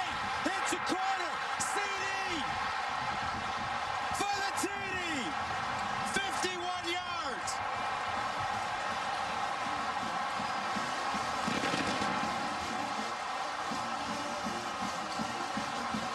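A large stadium crowd roars and cheers loudly.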